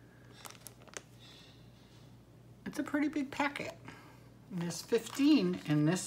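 A plastic package crinkles as it is handled.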